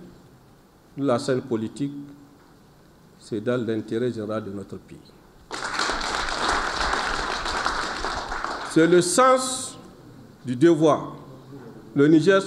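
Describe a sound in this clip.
A man speaks slowly and firmly into microphones, with pauses.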